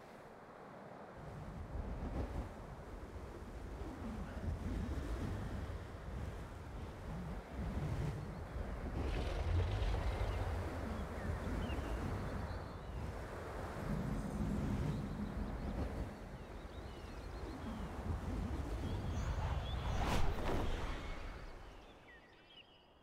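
Wind rushes loudly past a flying dragon.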